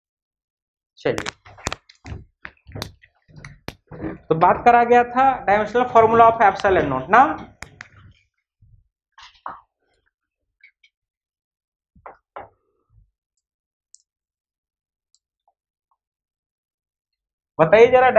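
A man speaks nearby in a steady explaining voice.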